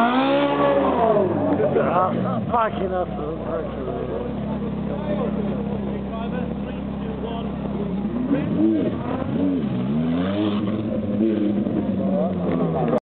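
A sports car engine rumbles at idle close by.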